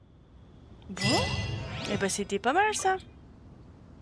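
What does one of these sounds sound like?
A bright chiming jingle plays.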